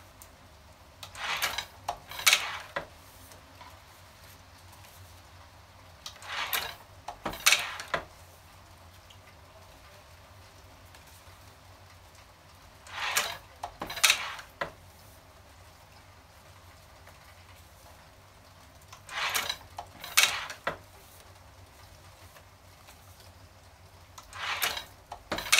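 A hand-operated printing press clanks and thumps in repeated bursts.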